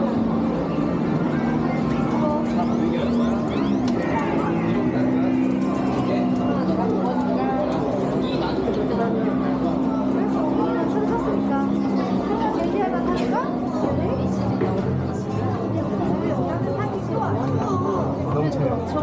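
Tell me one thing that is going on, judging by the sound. Arcade game machines play loud electronic music and jingles.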